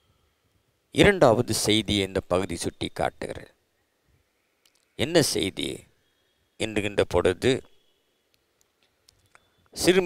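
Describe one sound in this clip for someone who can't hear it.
An elderly man speaks slowly and firmly into a close microphone, with pauses.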